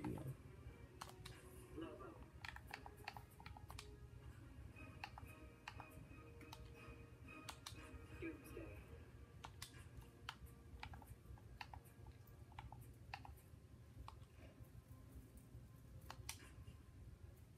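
Menu selection sounds click and blip from a television speaker.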